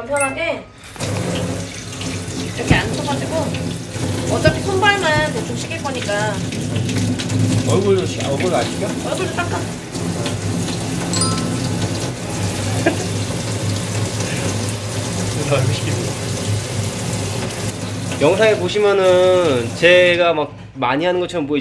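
Water runs from a tap and splashes.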